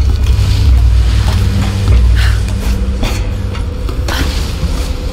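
Strong wind howls.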